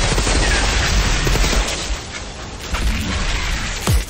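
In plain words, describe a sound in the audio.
Electric zaps crackle.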